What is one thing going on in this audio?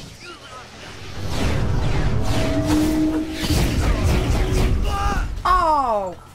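Energy beams crackle and roar in a loud game battle.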